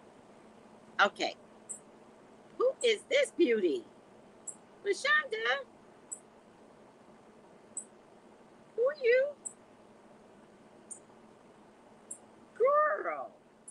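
A woman speaks in short bursts close to a microphone, heard through an online call.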